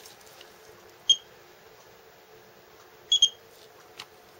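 A curing light gives short high beeps.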